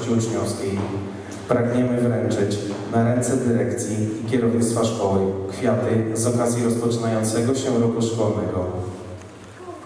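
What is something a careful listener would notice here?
A young man speaks into a microphone over loudspeakers in an echoing hall.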